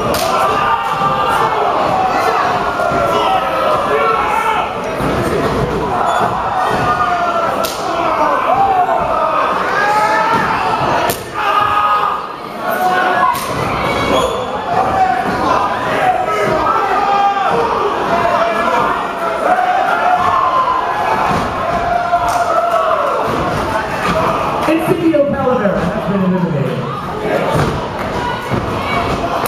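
A crowd of men shouts and yells, close by.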